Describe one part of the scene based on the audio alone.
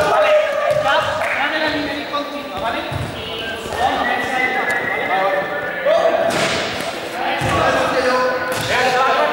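Young men talk and call out nearby in a large echoing hall.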